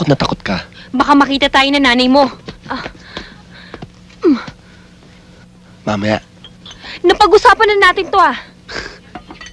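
A young woman answers in a tense voice, close by.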